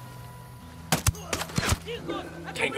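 A rifle fires sharp, loud shots close by.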